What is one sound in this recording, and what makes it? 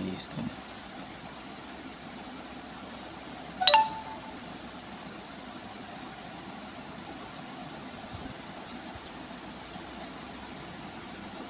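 A blending stump rubs across drawing paper.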